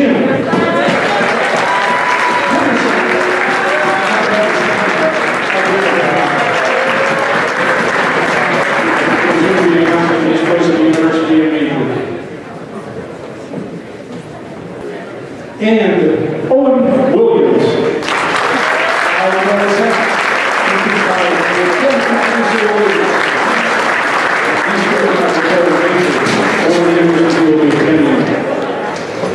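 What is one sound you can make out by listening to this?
A crowd claps and applauds in a large echoing hall.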